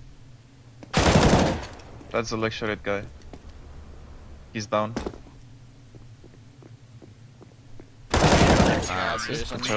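Gunshots burst out loudly in short volleys.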